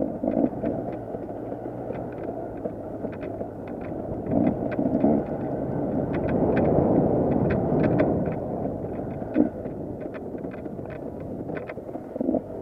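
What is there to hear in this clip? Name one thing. Rocks and gravel knock against a dirt bike's underside.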